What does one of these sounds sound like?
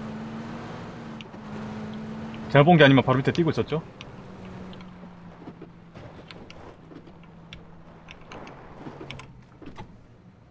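A car engine hums steadily, then slowly winds down.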